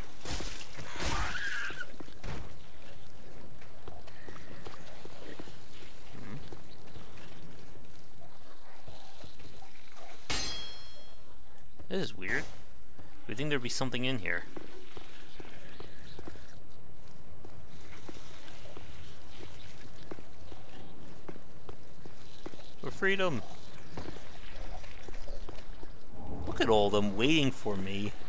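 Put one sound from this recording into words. Armoured footsteps clink and thud on stone.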